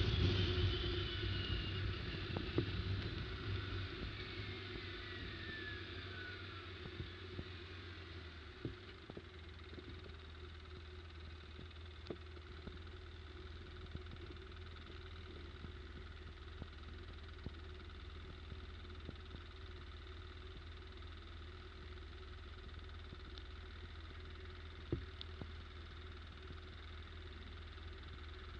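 A quad bike engine hums steadily close by.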